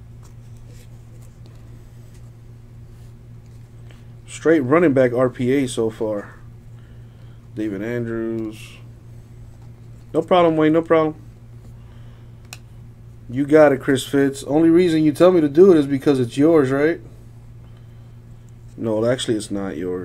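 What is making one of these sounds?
Trading cards slide and rustle softly as they are shuffled by hand.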